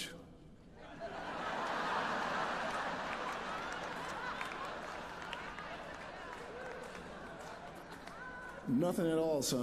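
A large audience laughs.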